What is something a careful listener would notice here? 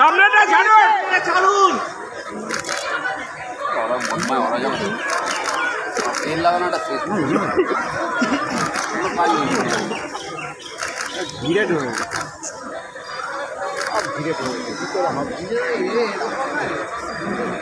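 A crowd of men talks and murmurs outdoors close by.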